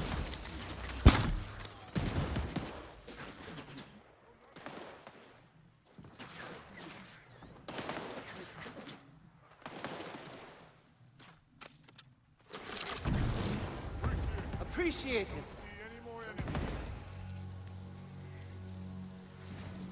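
A sword swishes sharply through the air.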